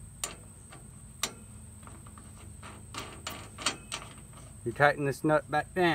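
A heavy cable knocks against a metal terminal.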